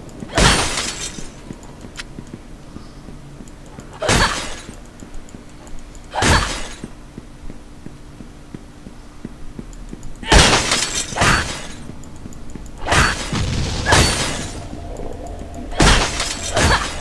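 Sword blows and magic bursts crash in short, loud bursts.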